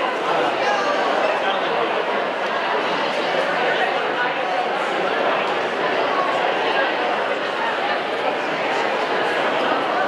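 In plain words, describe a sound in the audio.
A crowd of audience members chatters and murmurs in a large echoing hall.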